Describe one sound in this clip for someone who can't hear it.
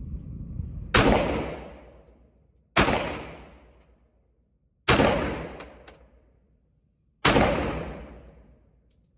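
A pistol fires loud shots in a small room.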